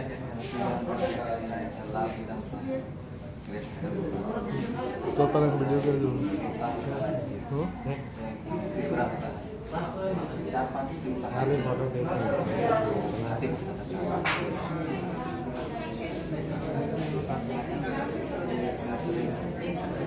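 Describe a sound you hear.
A man asks questions in a calm voice close by.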